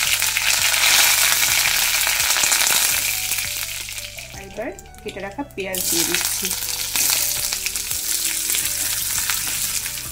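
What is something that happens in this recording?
Oil sizzles and crackles loudly in a hot pan.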